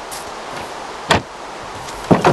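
A wooden trapdoor bangs open.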